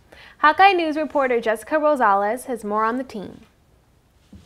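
A young woman speaks brightly and clearly into a microphone.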